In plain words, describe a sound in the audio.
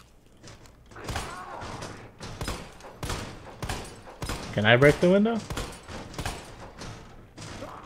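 A pistol fires several shots in quick succession.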